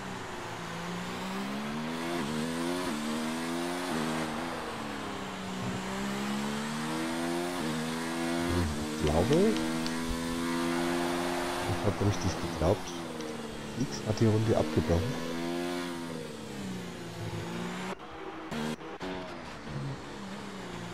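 A racing car engine screams at high revs, rising and falling as it shifts gears.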